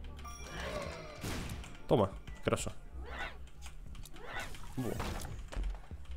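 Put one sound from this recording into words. Cartoonish squelching and popping sound effects play in quick bursts.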